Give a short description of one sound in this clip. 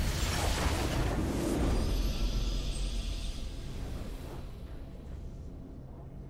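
A triumphant game fanfare swells and fades.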